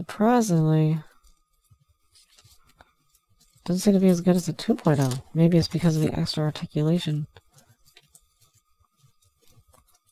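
Small plastic parts click and tap softly as hands handle them.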